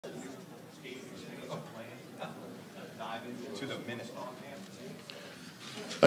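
A man speaks calmly through a loudspeaker in a large room.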